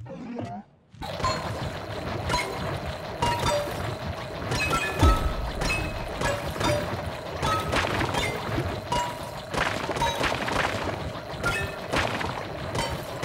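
Blocks break with rapid crunching and chiming sounds.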